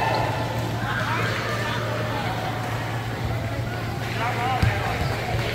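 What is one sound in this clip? Distant voices of men and young people echo through a large indoor hall.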